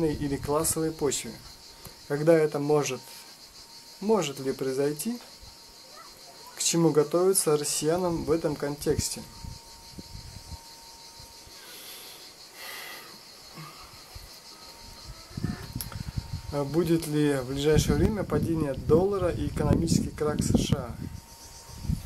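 A man speaks calmly and close up, with long pauses.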